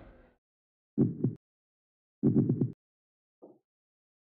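Short game menu sounds blip when options are picked.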